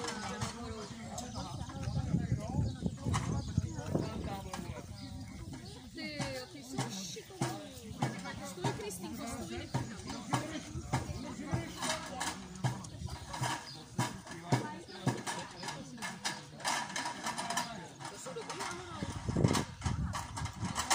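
Wooden poles knock and creak.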